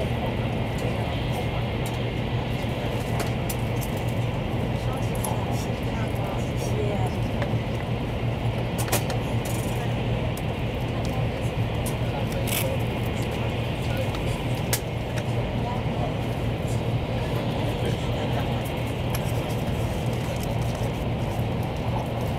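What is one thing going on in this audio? A train rumbles steadily at speed on its track.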